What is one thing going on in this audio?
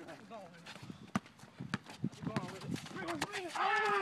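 A basketball bounces on asphalt.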